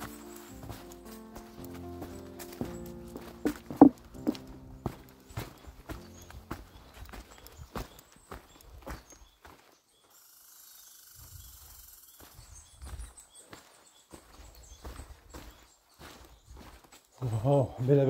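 Footsteps crunch on a forest trail.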